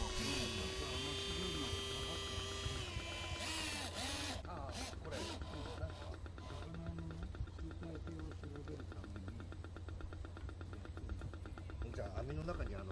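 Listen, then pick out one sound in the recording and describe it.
A radio-controlled model fishing boat motors across a pond.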